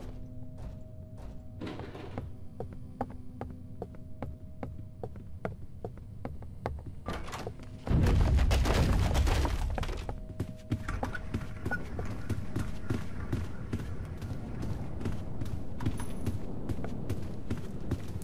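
Footsteps tap quickly and steadily on a wooden floor.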